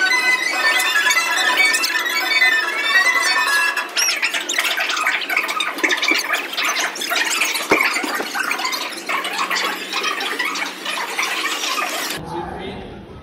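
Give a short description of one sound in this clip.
Cheerful carousel music plays loudly nearby.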